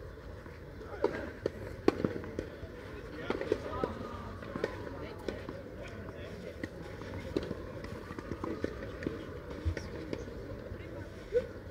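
Two young players talk quietly to each other outdoors.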